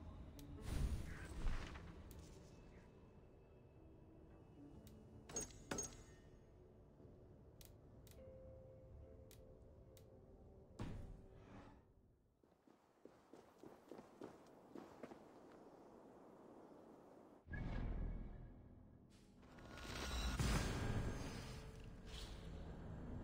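Soft menu clicks and chimes sound now and then.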